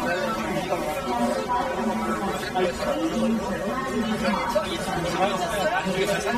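A crowd of men and women talk and cheer close by.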